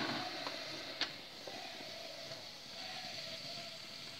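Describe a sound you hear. A lid on an electric cooker clicks open.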